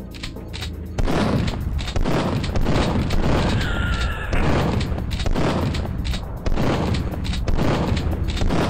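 A shotgun fires again and again with loud, booming blasts.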